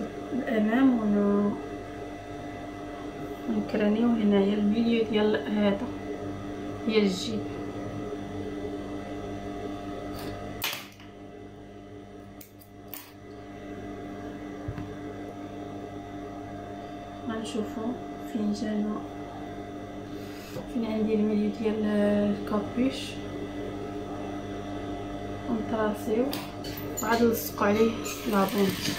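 A sewing machine hums steadily.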